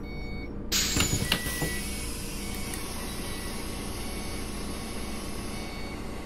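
A bus engine hums steadily at idle.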